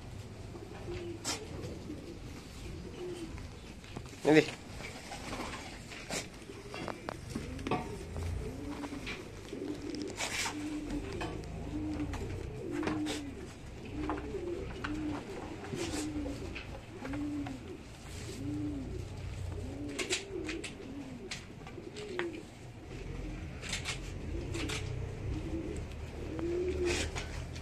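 Sheep bleat repeatedly nearby.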